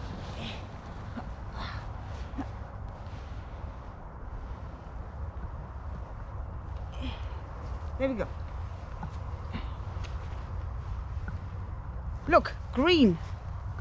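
Twigs and branches rustle and snap as they are pulled.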